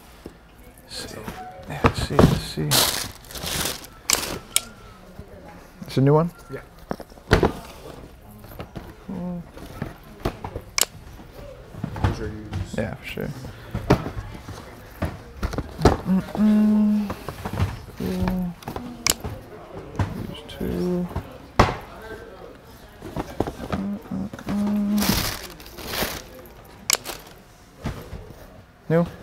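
A young man speaks casually up close.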